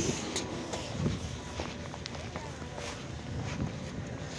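Footsteps crunch through fresh snow.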